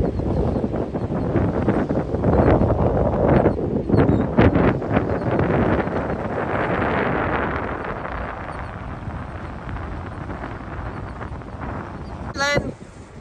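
Wind blusters loudly outdoors.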